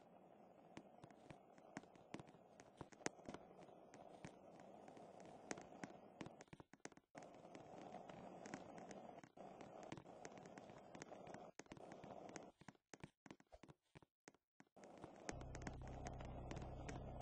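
Light footsteps patter quickly across a hard floor.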